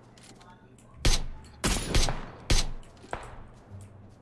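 Rifle shots crack sharply, several in quick succession.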